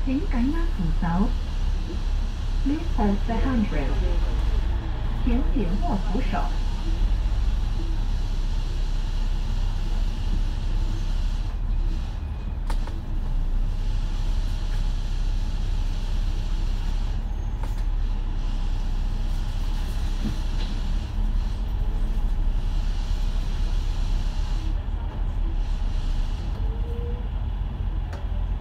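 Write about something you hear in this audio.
A bus engine rumbles steadily while moving slowly through traffic.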